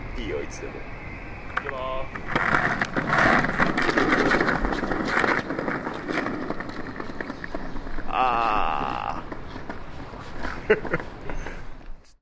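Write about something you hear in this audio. Skateboard wheels roll and rumble over paving stones.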